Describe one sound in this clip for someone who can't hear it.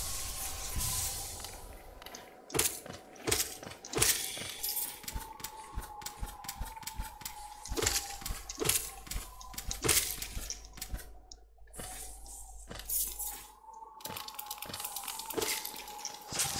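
Sharp video game slashing sounds strike again and again.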